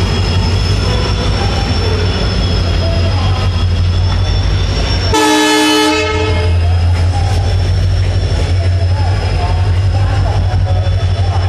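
A train rolls slowly along the rails.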